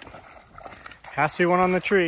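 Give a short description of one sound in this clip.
A hooked fish splashes in the water.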